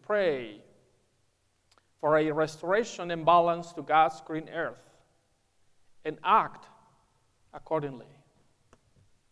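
A man speaks calmly into a nearby microphone in a reverberant hall.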